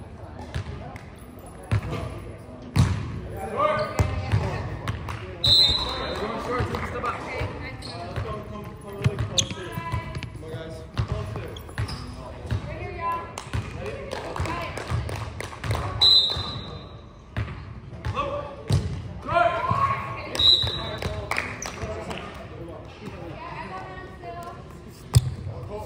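A volleyball thumps off hands and arms in a large echoing gym.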